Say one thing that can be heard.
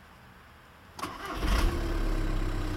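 A four-cylinder turbodiesel car engine starts up.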